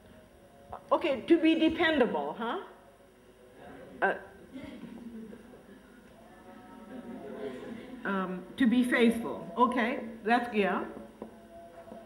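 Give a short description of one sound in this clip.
An elderly woman speaks calmly, explaining.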